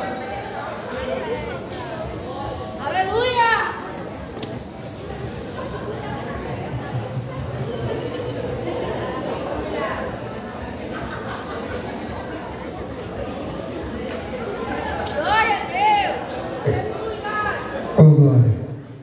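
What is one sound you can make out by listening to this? An audience murmurs and chats in a large echoing hall.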